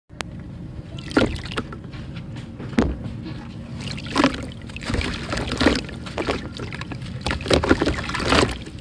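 Hands swish and slosh through shallow water.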